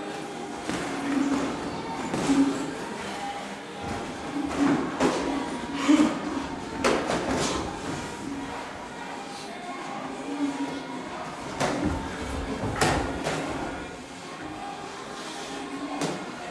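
Boxing gloves thud against a body and headgear in sparring.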